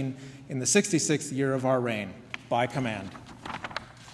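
A man speaks clearly through a microphone in an echoing hall.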